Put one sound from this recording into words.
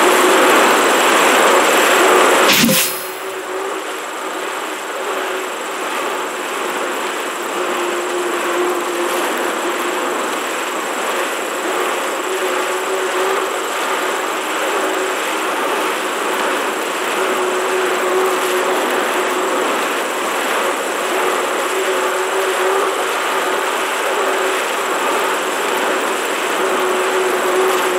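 A bike trainer whirs steadily under pedalling.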